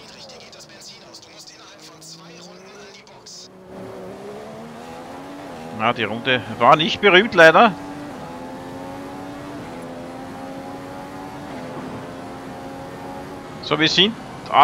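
A racing car engine roars and shifts up through the gears, rising in pitch.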